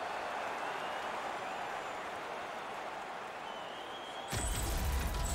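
A large arena crowd cheers loudly and slowly dies down.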